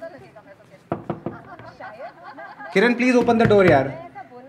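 A man knocks on a door.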